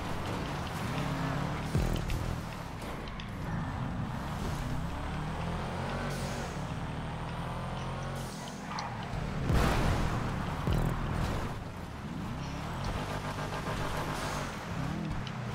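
A car engine revs hard and changes pitch as it races.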